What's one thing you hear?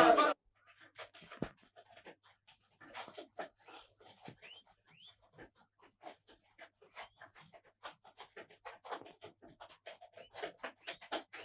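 Horses' hooves clop slowly on soft ground.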